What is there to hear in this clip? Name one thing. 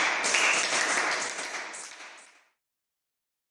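Children sing together in an echoing room.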